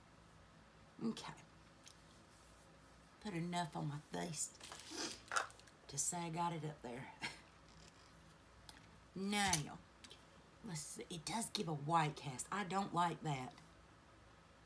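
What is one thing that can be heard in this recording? A middle-aged woman talks calmly and close by, in short bursts with pauses.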